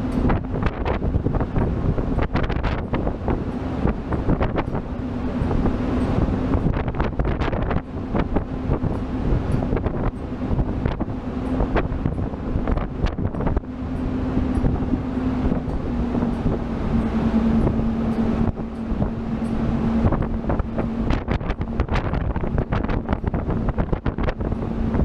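A boat's engine drones steadily.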